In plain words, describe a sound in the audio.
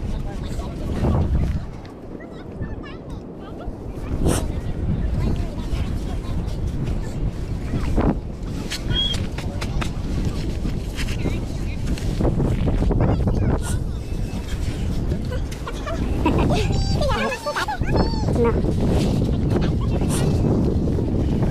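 Wind blows steadily across an open outdoor space.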